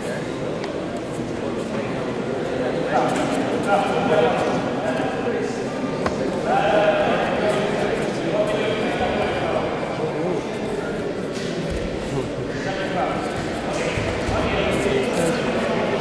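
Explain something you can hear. A crowd of men shouts and chatters in a large echoing hall.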